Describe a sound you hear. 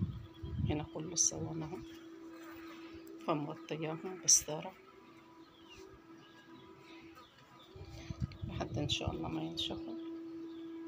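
Mesh netting rustles and brushes close by.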